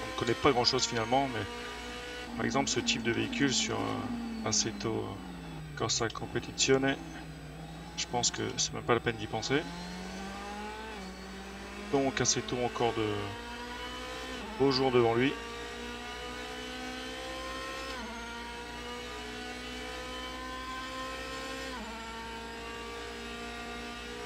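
A racing car engine revs and rises in pitch through the gears.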